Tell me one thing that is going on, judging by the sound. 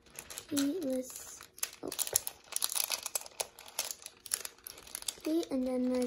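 A plastic bag of water beads crinkles as fingers squeeze it.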